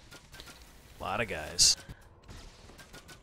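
Magic spells burst with a bright whooshing blast.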